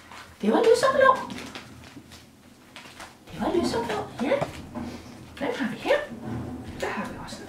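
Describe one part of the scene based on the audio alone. A woman talks warmly and close by.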